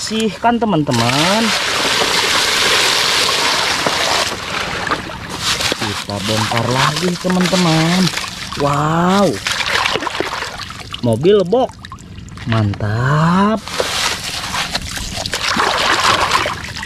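Water splashes loudly as a hand sweeps through it.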